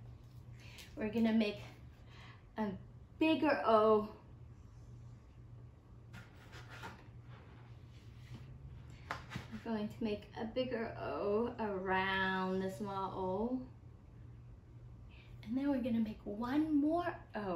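A young woman speaks animatedly nearby.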